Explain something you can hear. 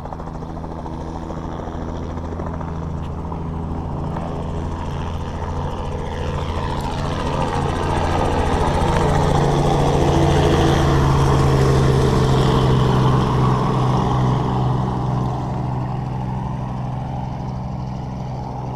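A small propeller plane's engine drones steadily nearby, growing louder and then easing off.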